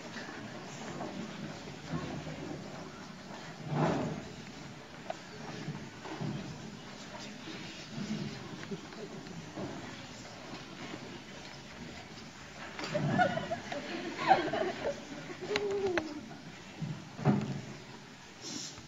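Young girls speak and call out in a large echoing hall.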